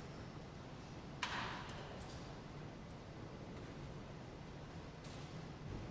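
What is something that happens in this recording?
Footsteps shuffle softly across a hard floor in an echoing hall.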